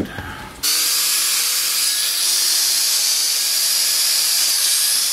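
A drill whirs steadily as it bores into a board.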